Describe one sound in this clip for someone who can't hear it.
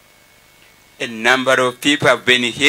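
A man speaks with animation through a microphone and loudspeakers.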